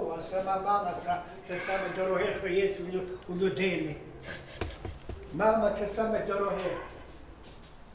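An elderly man talks with animation close by.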